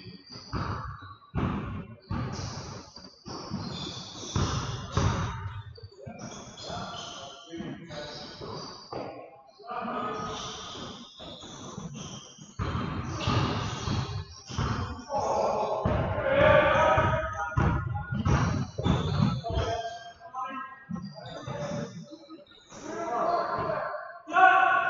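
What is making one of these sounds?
Men call out to each other across an echoing gym.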